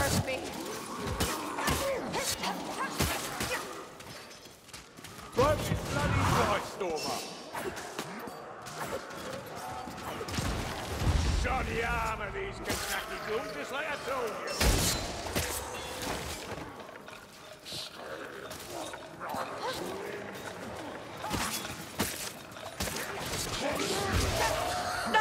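Creatures snarl and screech during a fight.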